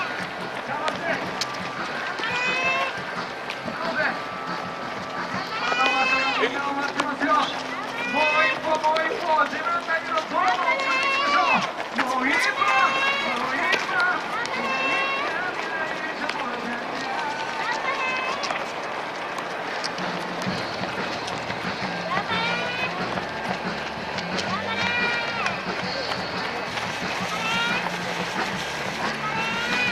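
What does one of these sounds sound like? Men and women call out and cheer nearby, outdoors.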